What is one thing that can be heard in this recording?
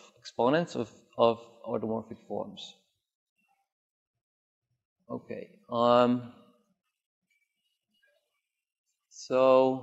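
A man speaks calmly into a microphone in a large room, with pauses.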